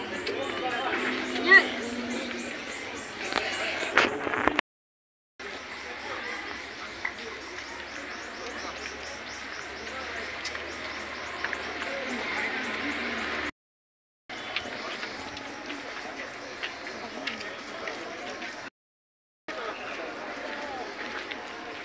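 People chatter nearby outdoors.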